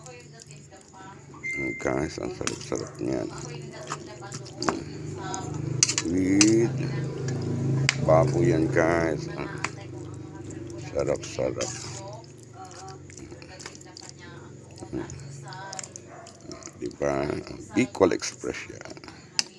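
Thick, wet food squelches as it is stirred.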